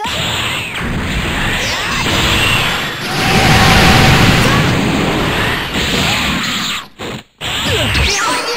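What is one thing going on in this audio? Punches and energy blasts thud and crackle in a fast fight.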